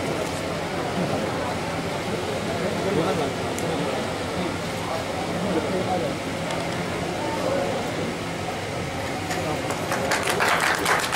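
Several men talk together nearby.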